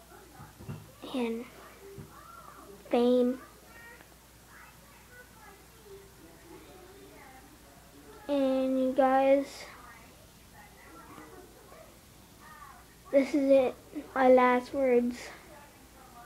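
A young boy speaks close to the microphone in short bursts, with long pauses.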